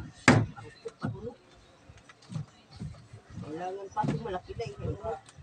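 Wooden boards knock and thump.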